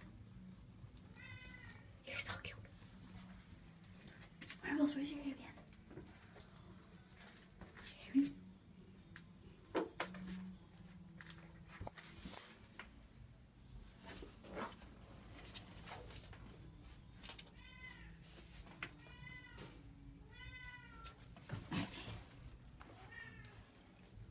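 A cat meows with short chirping trills.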